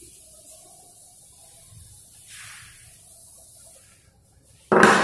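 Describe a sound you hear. A duster rubs across a chalkboard.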